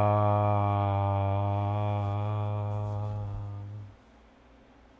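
A man chants one long, low, steady note close by.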